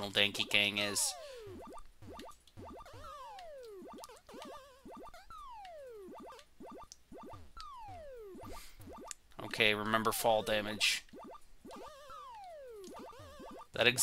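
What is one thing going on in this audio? Retro video game sound effects blip and chirp with quick falling tones.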